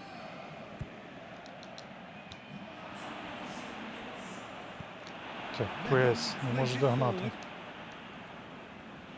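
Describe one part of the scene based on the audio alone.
A large crowd murmurs and roars steadily in a stadium.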